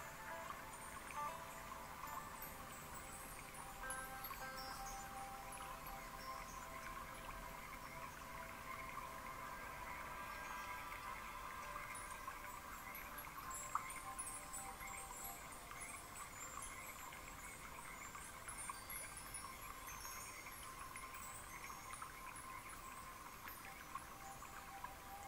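Water splashes steadily down a small waterfall.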